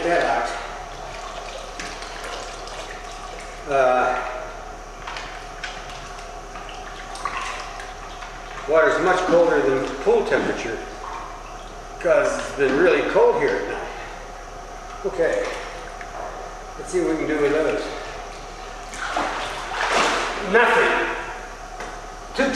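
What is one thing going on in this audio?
Water splashes as a boy wades and swims.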